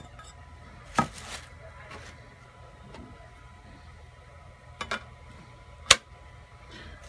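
A metal panel knocks against a surface.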